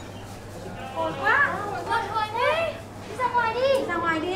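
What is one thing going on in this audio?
Several women talk and exclaim excitedly.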